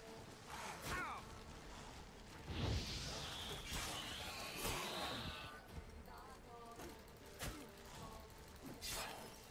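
A sword clashes and strikes in a fight.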